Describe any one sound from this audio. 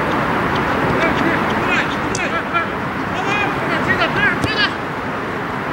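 Players shout to each other in the distance across an open field.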